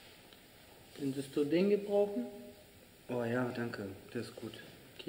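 A young man answers calmly in conversation nearby.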